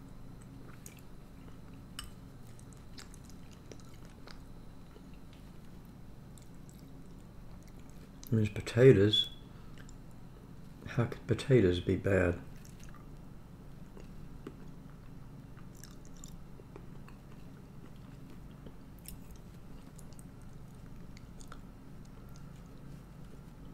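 A metal spoon scrapes and clinks against a bowl.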